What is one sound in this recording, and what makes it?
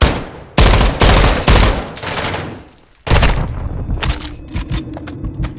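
Gunshots fire in loud, heavy bursts.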